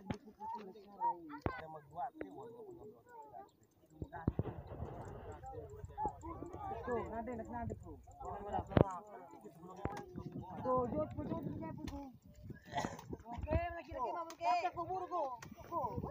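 A crowd of men and boys talk and call out outdoors.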